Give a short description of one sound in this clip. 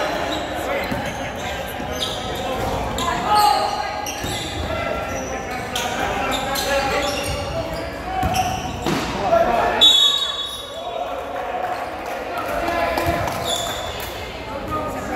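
A crowd of spectators murmurs and calls out in a large echoing gym.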